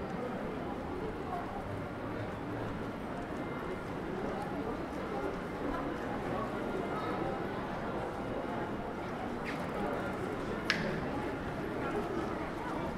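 Footsteps shuffle on paving stones.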